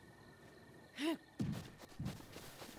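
A rock lands with a thud.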